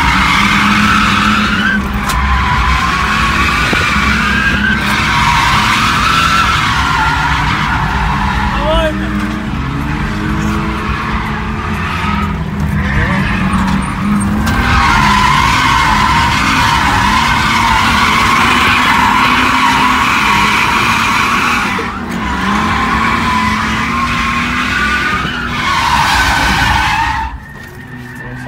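A car engine drones close by, rising and falling in pitch.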